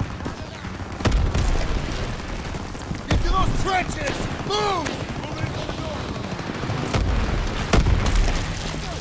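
A submachine gun fires.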